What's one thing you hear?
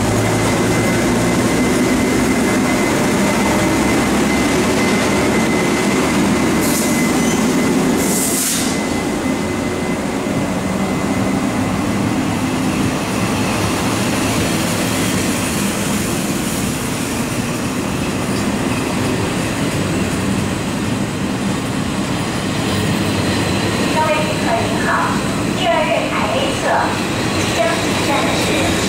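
A train rumbles steadily past at close range.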